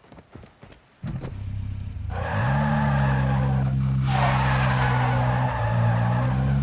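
A car engine starts and revs up, then runs loudly.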